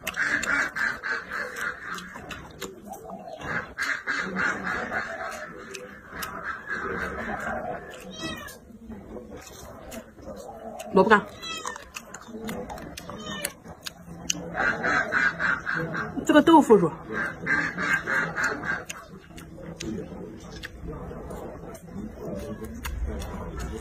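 A young woman chews crunchy vegetables loudly close by.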